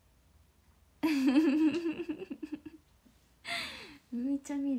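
A young woman laughs.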